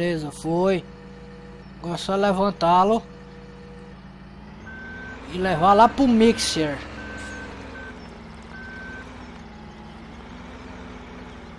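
A loader's engine hums steadily.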